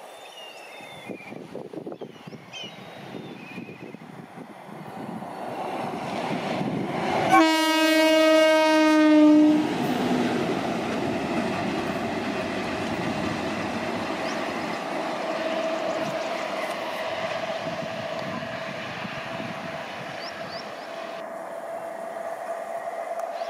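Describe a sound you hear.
An electric locomotive rumbles along the rails, growing louder as it nears.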